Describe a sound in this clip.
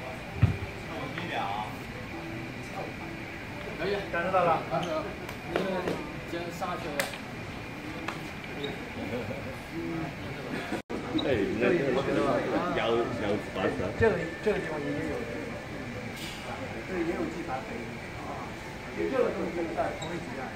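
Men talk calmly nearby in an echoing hall.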